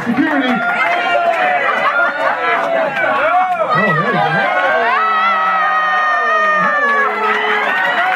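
A woman laughs and exclaims with delight close by.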